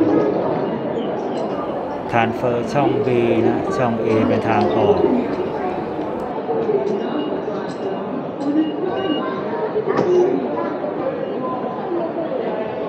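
A busy crowd murmurs and footsteps shuffle in an echoing hall.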